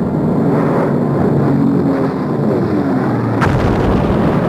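An aircraft engine drones overhead, its pitch dropping as it passes.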